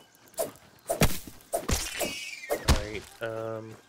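A wet, squishy burst splatters.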